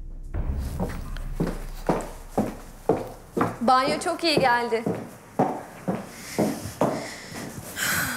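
Footsteps walk on a wooden floor.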